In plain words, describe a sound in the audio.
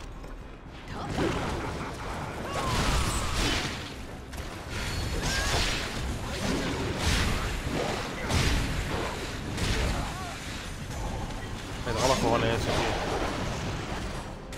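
A large beast roars and snarls.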